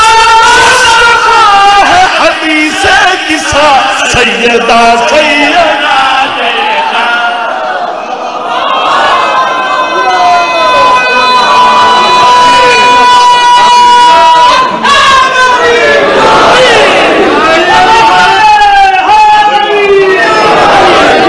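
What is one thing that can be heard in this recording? A man chants loudly through a microphone in an echoing hall.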